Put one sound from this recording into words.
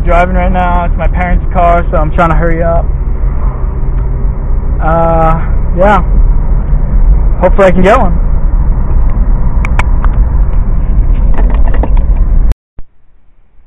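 A car engine hums steadily, with road rumble from inside the car.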